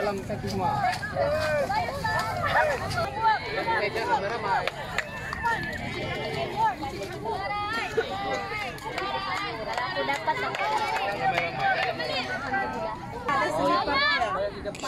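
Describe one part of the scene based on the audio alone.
A crowd of young girls shouts and cheers excitedly nearby.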